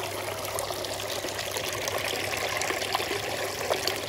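A frog splashes into water.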